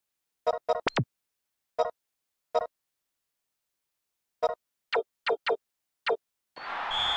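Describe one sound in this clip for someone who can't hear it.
Short electronic menu beeps sound one after another.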